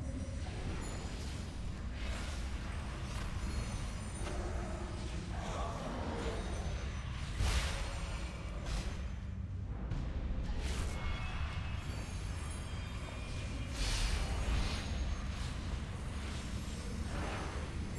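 Magic spells whoosh and crash in a noisy fight.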